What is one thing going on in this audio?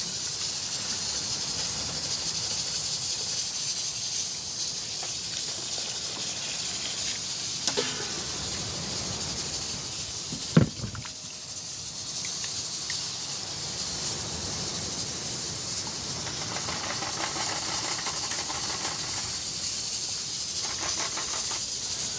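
A knife scrapes softly as it peels fruit.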